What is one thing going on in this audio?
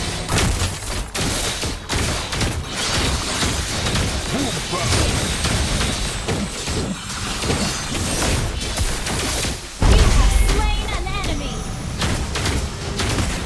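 Game fighting effects clash and blast in quick bursts.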